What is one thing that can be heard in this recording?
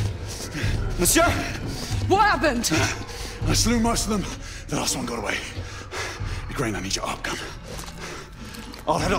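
A man speaks with tension, close by.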